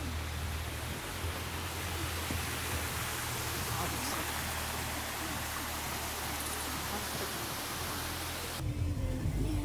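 A stream trickles and splashes over rocks.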